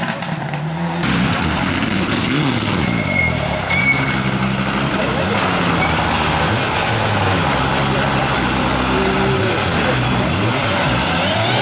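A second rally car engine roars close by, revving up and down.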